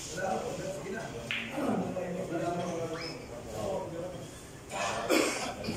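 Billiard balls knock together and roll across the table.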